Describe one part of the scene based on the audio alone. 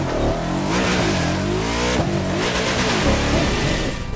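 Tyres screech on the road during a slide.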